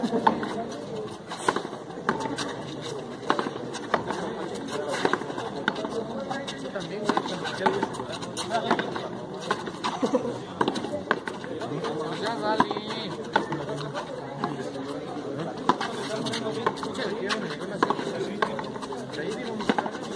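Sneakers scuff and squeak on a concrete floor.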